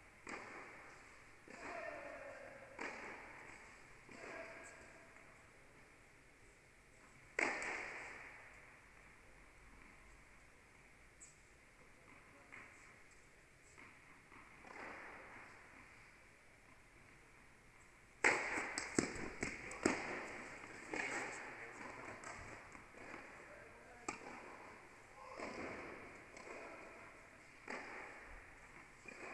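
Tennis balls bounce on the court.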